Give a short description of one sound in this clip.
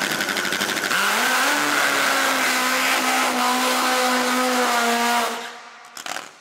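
A loud engine roars as a dragster launches and speeds away.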